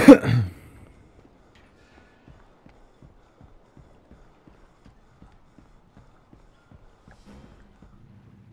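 Footsteps tap steadily on a hard surface.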